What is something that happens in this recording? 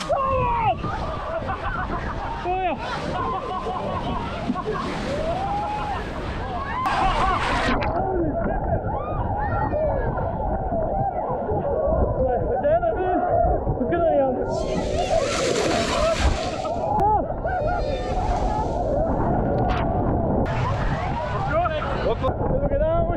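Many people shout and cheer in the distance.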